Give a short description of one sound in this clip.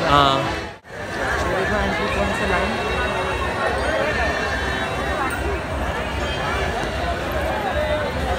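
A crowd chatters in a busy outdoor area.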